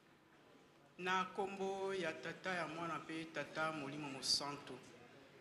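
Women's voices sing together in a large room.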